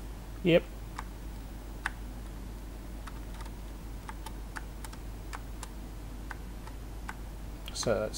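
A retro computer game makes short sharp clicking blips.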